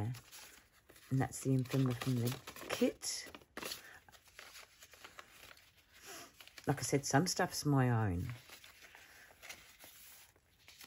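Old paper crinkles and rustles softly as pages are handled.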